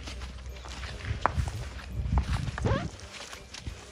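A young elephant snuffles and bumps right up close.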